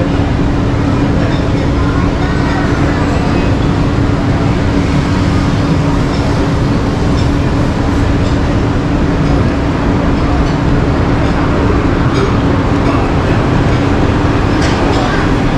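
City traffic hums steadily on a busy street below.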